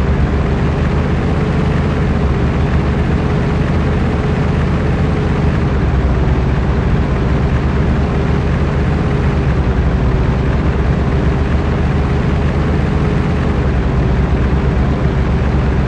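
Tyres roll and crunch over a gravel road.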